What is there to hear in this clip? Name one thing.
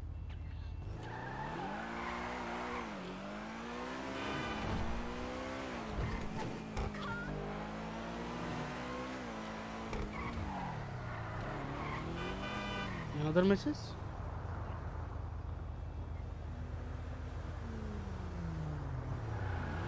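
A sports car engine revs hard, rising and falling in pitch as it speeds away.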